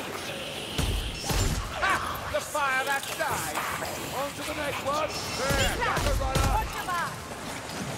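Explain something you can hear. A heavy gun fires loud booming shots.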